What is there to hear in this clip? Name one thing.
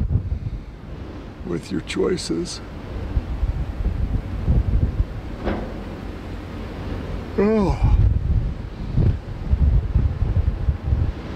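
Wind buffets the microphone outdoors in gusts.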